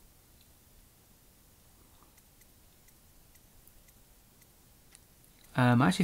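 Soft clicks tick repeatedly as a menu scrolls.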